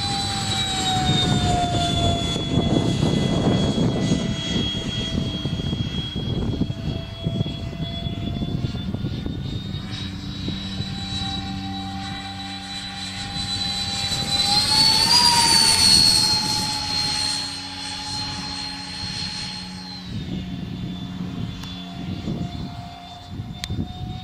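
Wind blows across the microphone.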